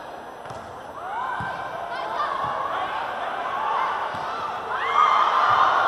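Sneakers squeak on a court floor.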